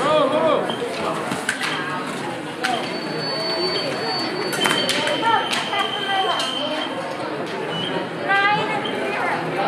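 Shoes squeak sharply on the floor.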